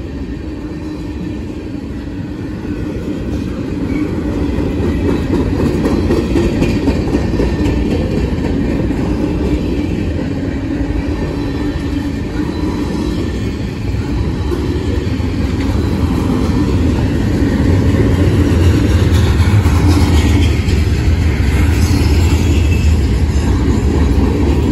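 Steel wheels squeal on the rails.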